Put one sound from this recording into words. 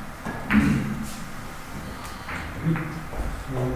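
Billiard balls clack against each other as they roll.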